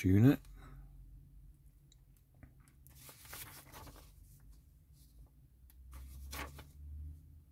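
Small plastic parts click and snap together.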